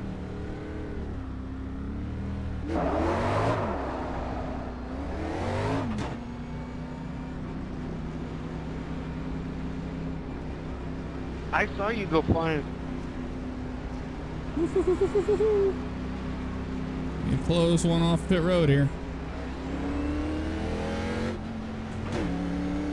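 A race car engine drones loudly, rising and falling in pitch as it revs.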